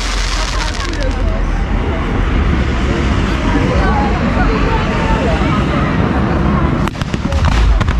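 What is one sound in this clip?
A crowd of people chatters and murmurs close by.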